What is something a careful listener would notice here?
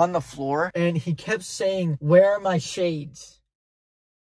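A teenage boy speaks with animation, close by.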